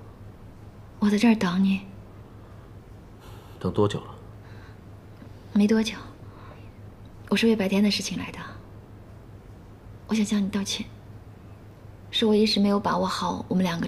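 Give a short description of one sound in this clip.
A young woman speaks softly and calmly, close by.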